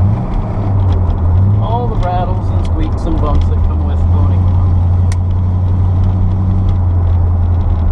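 A C3 Corvette's V8 engine drones while cruising, heard from inside the car.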